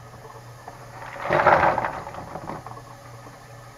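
Vegetables tumble into a frying pan.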